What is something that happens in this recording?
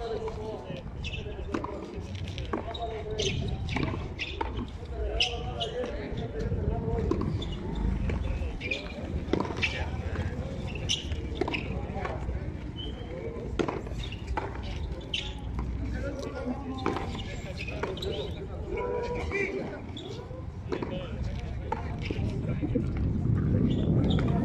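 A handball smacks off palms and a concrete wall with sharp claps.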